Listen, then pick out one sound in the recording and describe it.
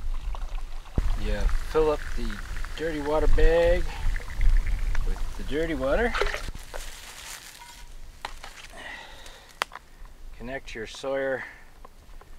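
A man speaks calmly nearby, outdoors.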